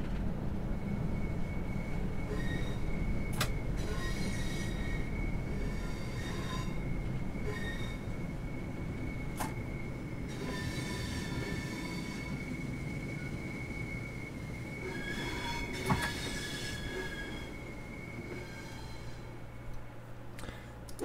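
A steady electronic tone hums in the cab.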